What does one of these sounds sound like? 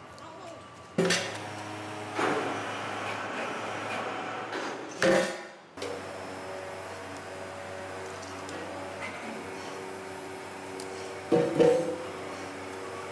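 Heavy metal parts clank and knock.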